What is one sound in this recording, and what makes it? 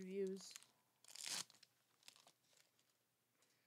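Trading cards rustle and slide as they are handled.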